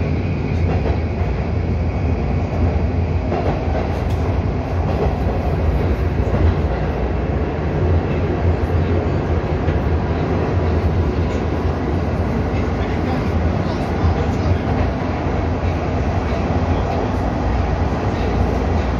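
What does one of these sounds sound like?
A subway train rumbles loudly and steadily along the track.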